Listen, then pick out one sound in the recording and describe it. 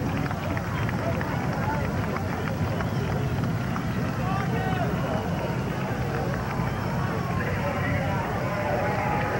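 A large crowd murmurs and chatters steadily outdoors.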